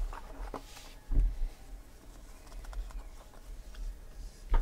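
A stack of trading cards shuffles and flicks.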